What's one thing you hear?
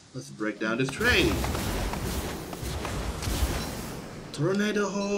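A small whirlwind whooshes past in a roaring gust.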